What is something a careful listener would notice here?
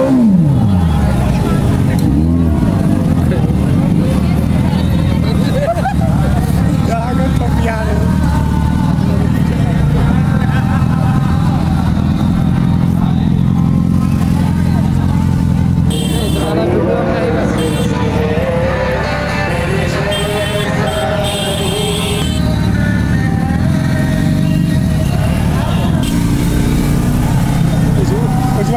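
A motorcycle engine idles and rumbles close by.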